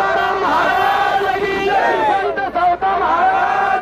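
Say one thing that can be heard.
A crowd of men clap their hands in rhythm.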